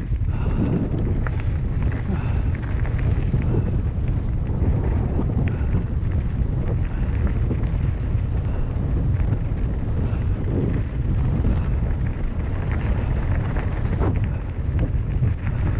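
Tyres crunch and rattle over a dry dirt trail.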